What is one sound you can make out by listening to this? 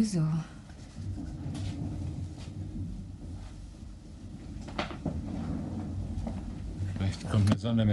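A man speaks in a low, deep voice nearby.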